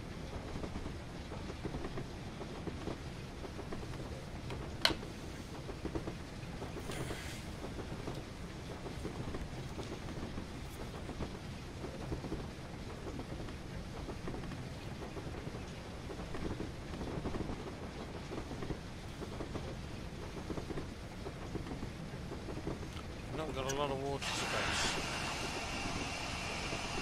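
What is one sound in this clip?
A steam locomotive chuffs and rumbles along the rails.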